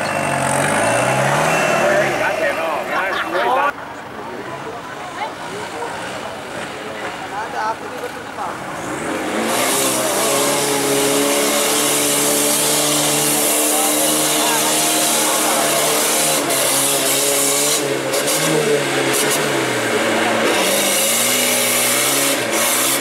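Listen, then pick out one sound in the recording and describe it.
An off-road 4x4 engine revs hard under load.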